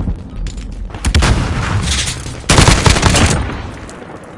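Gunfire bursts out in rapid shots.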